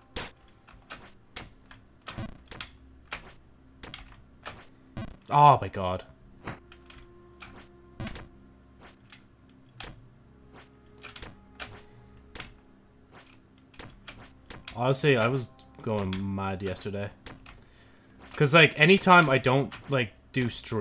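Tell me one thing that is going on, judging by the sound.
Short electronic game sound effects tick and blip throughout.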